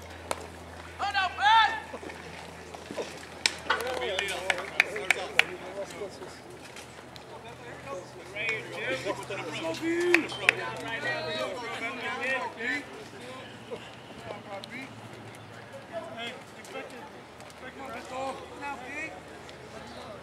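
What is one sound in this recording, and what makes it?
Young men call out and shout across an open outdoor field.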